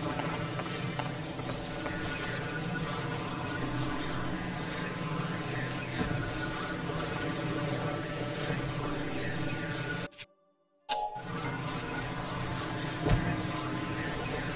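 Lava bubbles and hisses steadily.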